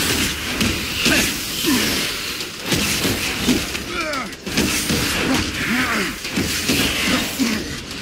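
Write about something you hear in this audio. Creatures shriek and screech.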